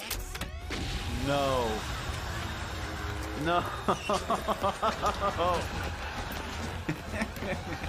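A young man laughs heartily close to a microphone.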